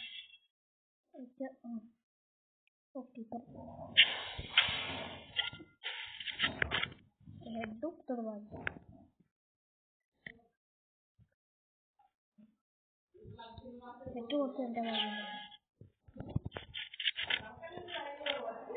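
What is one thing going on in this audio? A boy talks with animation into a nearby microphone.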